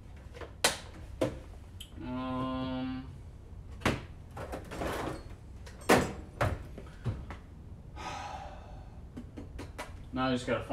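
Metal tools clink and clatter close by.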